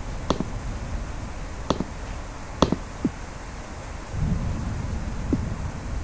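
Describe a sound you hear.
Blocks are placed with short, soft thuds.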